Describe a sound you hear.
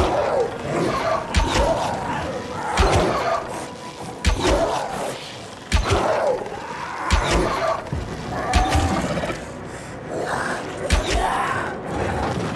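Creatures shriek and growl in pain.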